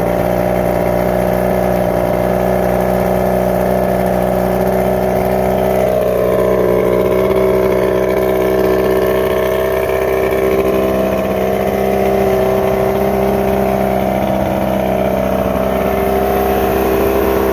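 An outboard motor engine runs loudly at a steady idle.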